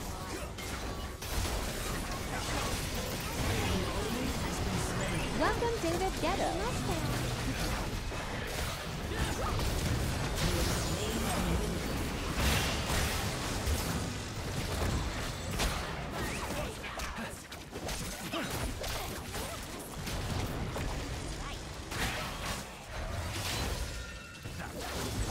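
Game spell effects whoosh and crackle in a busy fight.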